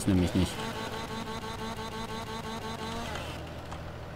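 A chainsaw engine idles and revs steadily up close.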